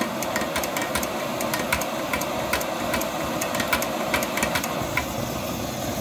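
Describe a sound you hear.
A hand pump on a camping stove clicks and squeaks rapidly.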